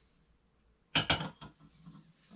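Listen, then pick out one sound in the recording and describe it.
A man sets a mug down on a table with a knock.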